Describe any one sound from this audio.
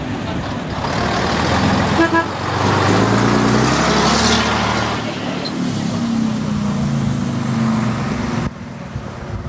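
A lorry engine revs up and its pitch rises and falls as it pulls away.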